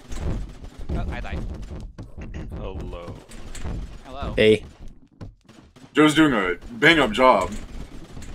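Weapons in a video game fire with short, sharp shots.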